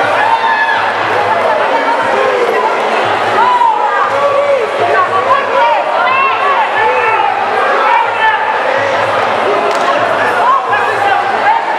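A large crowd shouts and cheers in a loud echoing hall.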